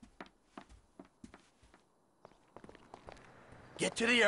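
Footsteps hurry on a hard floor.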